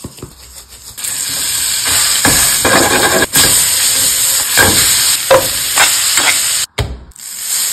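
A steak sizzles loudly in a hot pan.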